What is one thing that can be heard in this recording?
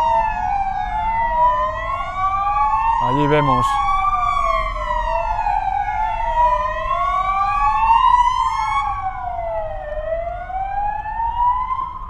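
A police siren wails loudly, rising and falling.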